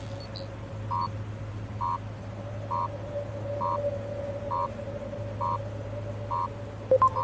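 A soft electronic beep repeats at a steady pace.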